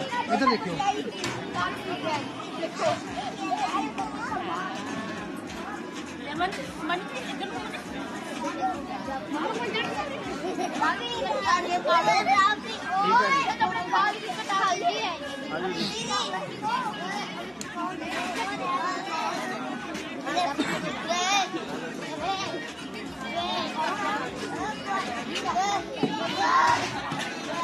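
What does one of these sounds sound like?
A crowd of men and women chatter and talk over one another nearby.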